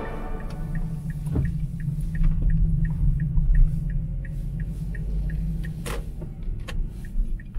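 A turn signal ticks at a steady, quick pace.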